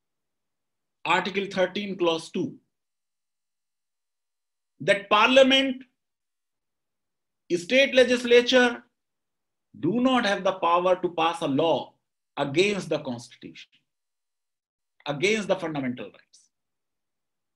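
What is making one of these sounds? A middle-aged man talks calmly over an online call, in short bursts with pauses.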